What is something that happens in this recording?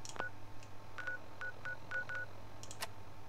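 Short electronic beeps click as a menu is scrolled.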